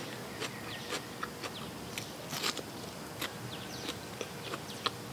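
A young woman chews crunchy food noisily close to a microphone.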